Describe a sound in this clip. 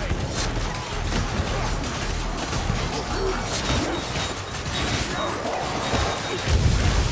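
Creatures snarl and growl in a fight.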